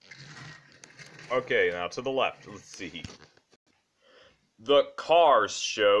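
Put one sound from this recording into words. A small toy car rolls across a wooden floor.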